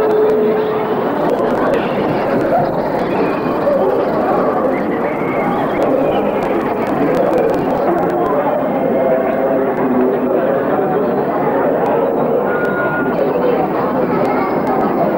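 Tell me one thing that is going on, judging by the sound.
A crowd chatters loudly all around.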